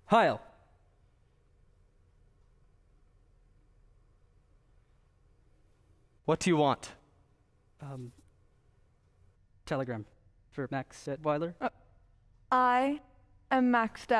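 A young man speaks his lines with animation, slightly distant, in a large room.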